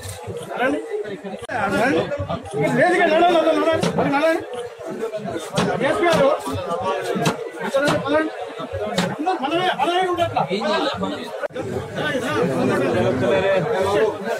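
Several men talk at once in a crowded room.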